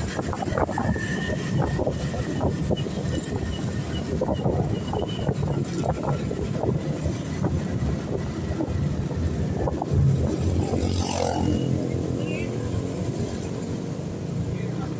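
Wind buffets outdoors as the ride moves along.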